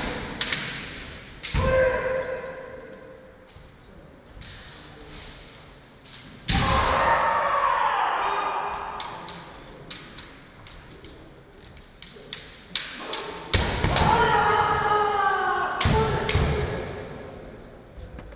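Bare feet stamp on a wooden floor.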